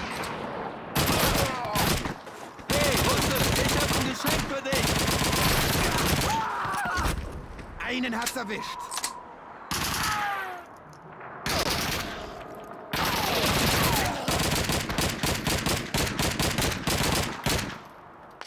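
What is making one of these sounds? A submachine gun fires rapid bursts at close range.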